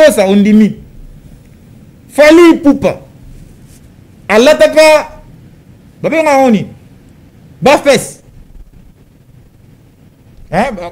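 A man speaks slowly and emphatically into a microphone, in short phrases with pauses.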